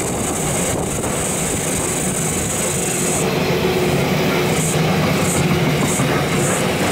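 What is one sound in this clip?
Train wheels squeal and clack on the rails.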